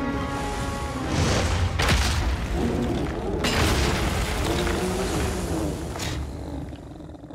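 A massive body crashes down with a heavy, rumbling thud.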